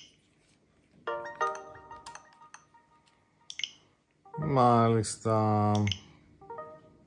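A game console plays short chiming tones.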